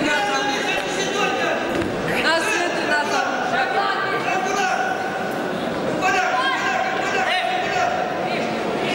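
A crowd of men shouts and calls out loudly in a large echoing hall.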